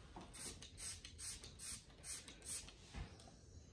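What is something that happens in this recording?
A spray bottle squirts several quick bursts.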